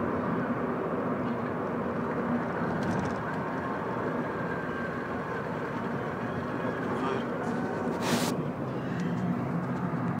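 Tyres roll on a paved road, heard from inside a car.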